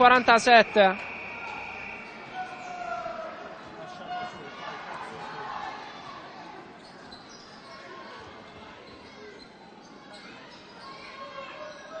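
Sneakers squeak on a court in a large echoing hall.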